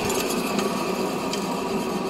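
A brake drum spins freely on its hub with a soft whir.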